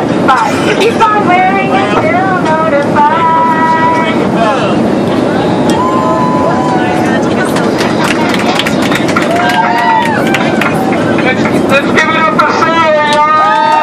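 An aircraft cabin hums steadily.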